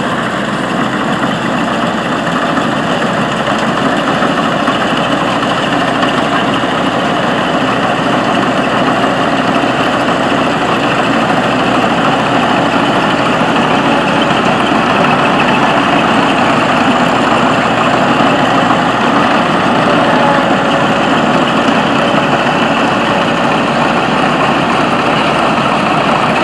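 A combine harvester's engine roars steadily close by.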